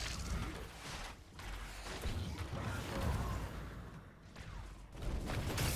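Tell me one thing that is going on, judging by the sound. Weapons blast and explosions boom in a busy battle.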